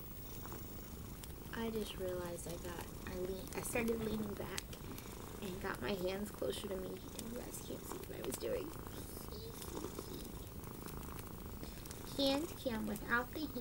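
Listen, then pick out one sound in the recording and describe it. Yarn rustles softly as hands handle it.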